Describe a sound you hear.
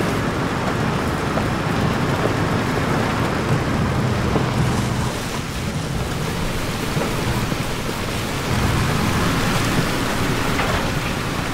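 Tyres roll over rough dirt ground.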